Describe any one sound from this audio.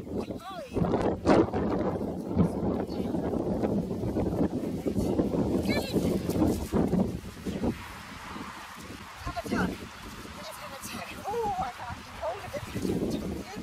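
A woman talks to her dogs from a short way off.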